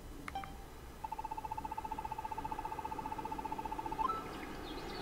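Rapid electronic blips tick quickly in a steady stream.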